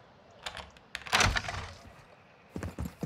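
A wooden door bursts open with a loud bang.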